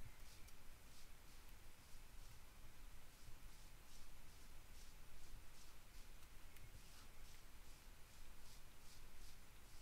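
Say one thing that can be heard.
Footsteps pad softly on grass at a steady walking pace.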